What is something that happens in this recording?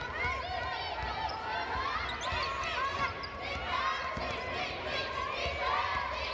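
Sneakers squeak sharply and often on a hardwood court.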